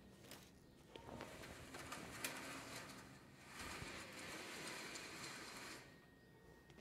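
A heavy cloth cover rustles and slides as it is pulled down.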